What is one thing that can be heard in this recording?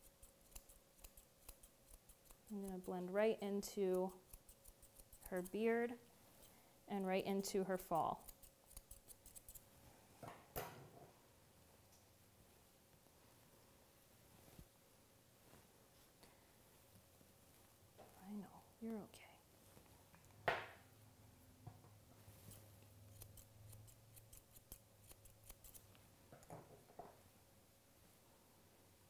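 Scissors snip through fur.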